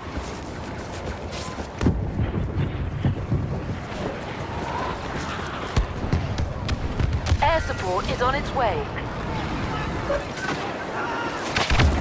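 Footsteps crunch quickly over forest ground.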